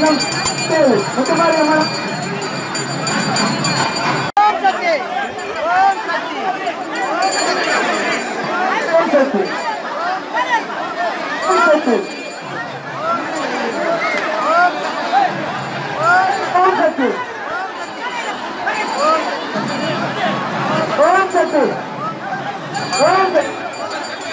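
A large crowd of men and women chatters and shouts all around.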